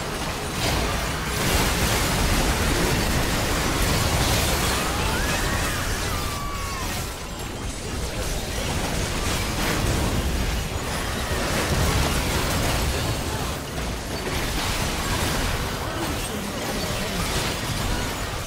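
Spell blasts and magic impacts crackle and boom in a fast video game battle.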